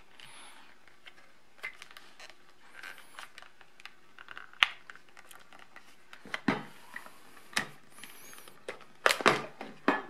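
A rubber case squeaks and clicks as hands pull it off a plastic device.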